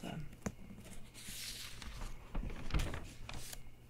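A page of a book rustles as it turns, close by.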